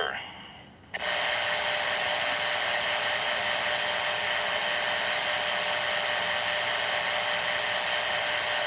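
A radio gives out a steady loud static hiss.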